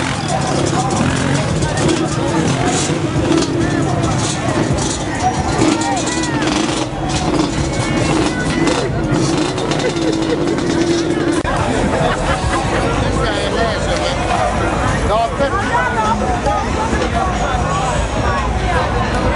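A crowd of people talk and call out all around, outdoors.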